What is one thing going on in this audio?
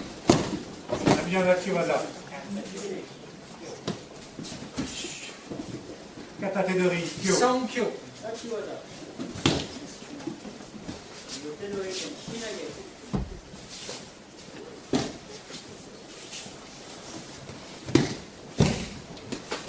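Bodies thud onto a mat.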